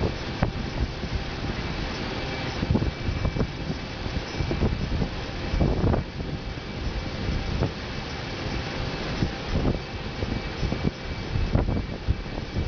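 Jet engines hum and roar steadily inside an aircraft cabin.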